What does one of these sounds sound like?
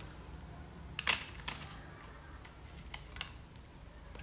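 Crayons clatter against a plastic box.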